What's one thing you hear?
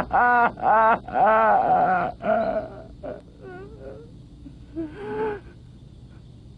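A man sobs and wails, close by.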